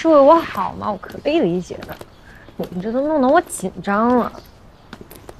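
A young woman speaks playfully nearby.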